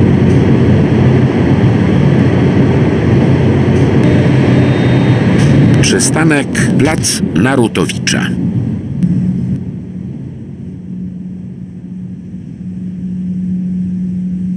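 A tram rolls along the rails and slows down.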